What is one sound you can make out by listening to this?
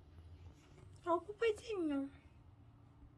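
A puppy whimpers with a few short, high, falling cries.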